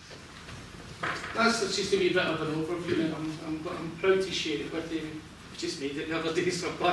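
A man speaks with animation to an audience in a room with a slight echo.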